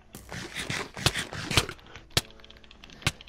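Sharp hits land in quick succession as a sword strikes.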